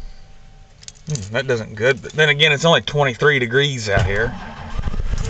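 An engine cranks and sputters as it starts up.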